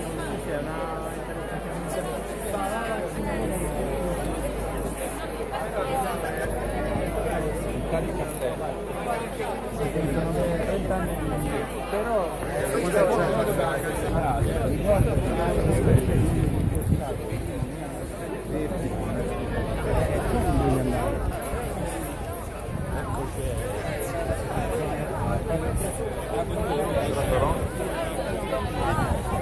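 A large crowd of men and women chatters loudly outdoors.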